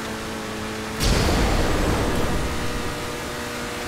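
A car engine roars louder as it revs.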